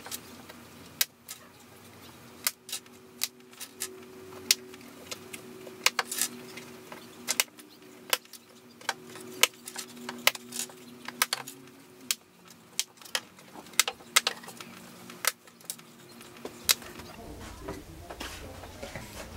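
Paper and cardboard rustle and tap close by.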